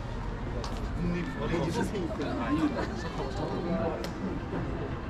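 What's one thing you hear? Men talk in passing outdoors.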